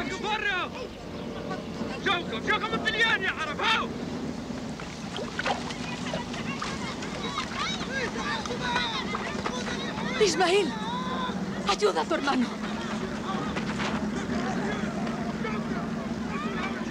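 A crowd of men and women clamours in the open air.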